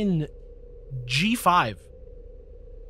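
A man speaks with animation into a microphone up close.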